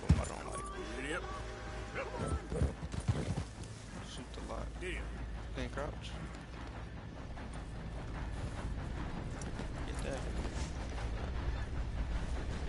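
A horse's hooves thud on grass.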